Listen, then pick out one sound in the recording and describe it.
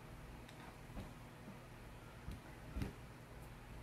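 A hand taps and knocks lightly on a table.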